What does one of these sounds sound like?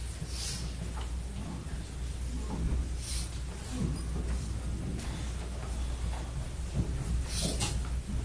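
People murmur and chat quietly.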